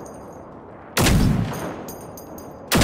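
An explosion bursts with a deep blast.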